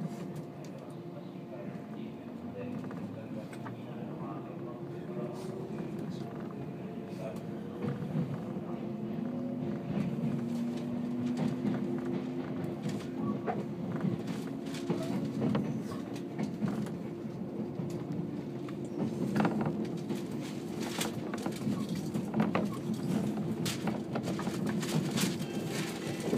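Train wheels clack and rattle over rail joints.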